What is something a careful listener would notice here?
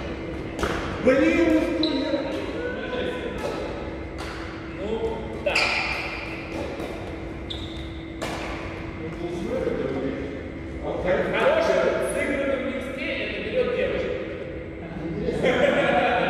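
Men talk casually to each other in a large echoing hall.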